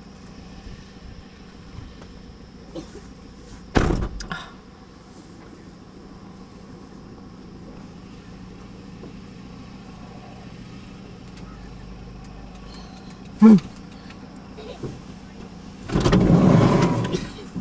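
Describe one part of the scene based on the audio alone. An old tractor engine chugs steadily nearby, outdoors.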